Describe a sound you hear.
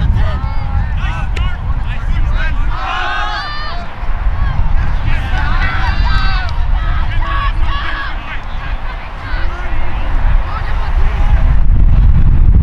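Young men shout and cheer outdoors.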